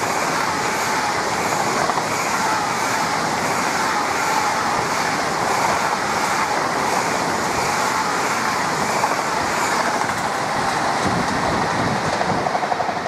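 A high-speed train roars past close by, its noise slowly fading.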